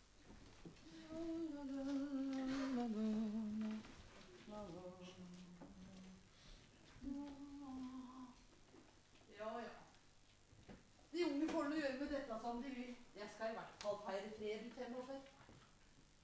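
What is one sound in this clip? A woman sings loudly in a large hall.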